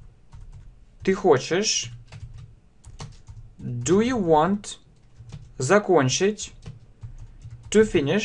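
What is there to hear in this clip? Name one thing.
A man speaks slowly and clearly into a close microphone, in short phrases with pauses.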